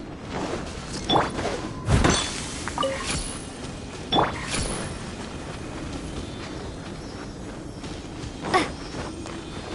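A blade whooshes through the air in quick swings.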